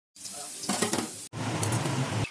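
Potatoes sizzle in hot oil.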